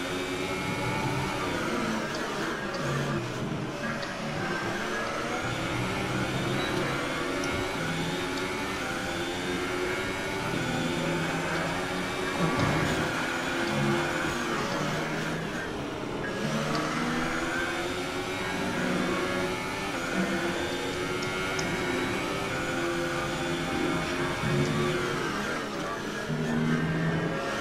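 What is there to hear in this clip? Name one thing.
A racing car engine screams at high revs, rising and dropping with each gear change.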